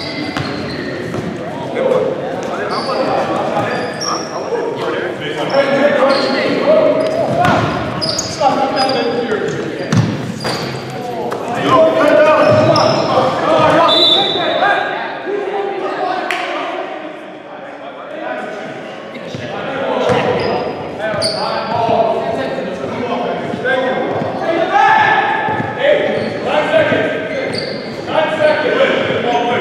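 Sneakers squeak on a hardwood court.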